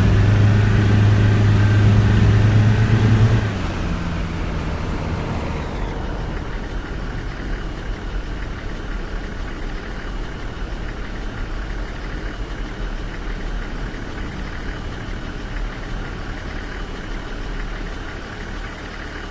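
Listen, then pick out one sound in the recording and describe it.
A truck engine drones loudly, then eases off to a low rumble.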